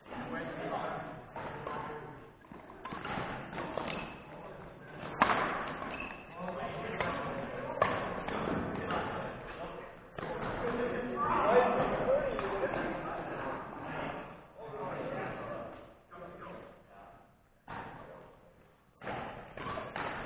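Shuttlecocks pop off badminton rackets in a large echoing hall.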